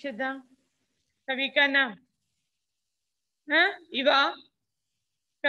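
A woman speaks nearby in short, calm phrases.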